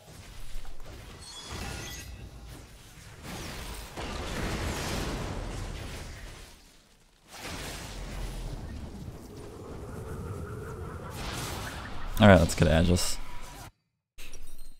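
Fantasy game sound effects whoosh and crackle.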